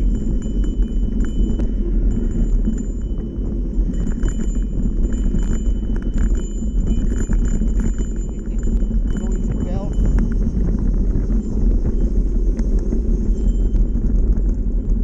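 Bike tyres roll and crunch over a rough dirt trail.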